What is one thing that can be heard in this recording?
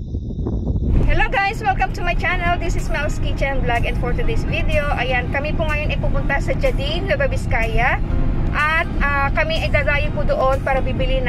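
A woman talks close to the microphone.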